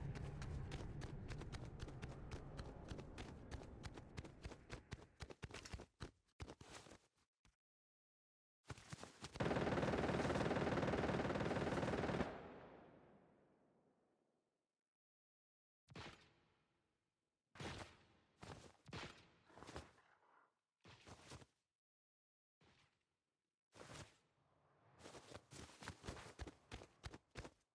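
Quick footsteps patter on hard ground.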